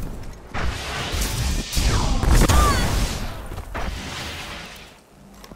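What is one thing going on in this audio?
A burst of gunfire and blasts roars loudly.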